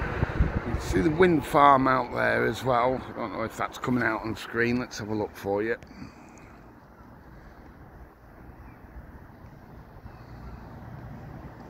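Calm sea water laps gently far below.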